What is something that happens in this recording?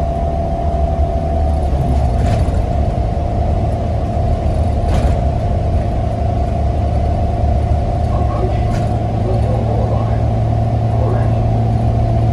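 A bus rattles and creaks as it rolls along the road.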